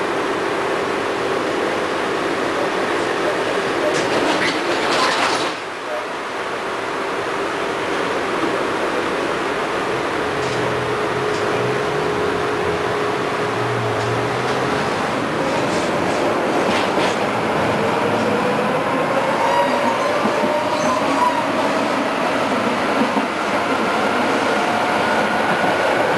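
A tram's motor hums and whines steadily as it rolls along.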